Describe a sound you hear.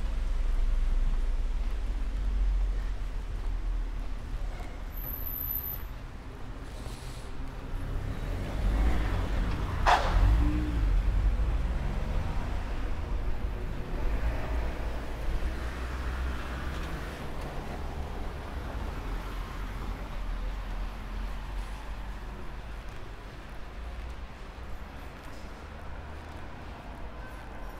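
Wind rumbles low and steadily outdoors.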